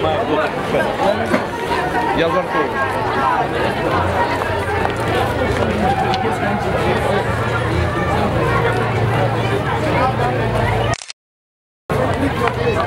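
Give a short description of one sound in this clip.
A large crowd of men and women chatters and calls out outdoors.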